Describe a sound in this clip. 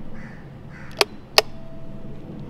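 A finger presses a doorbell button with a click.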